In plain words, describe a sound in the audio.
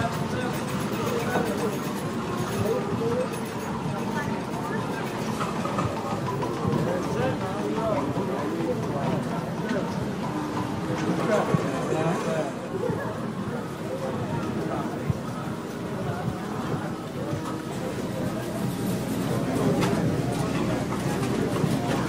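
A crowd of people murmurs and chatters in a large room.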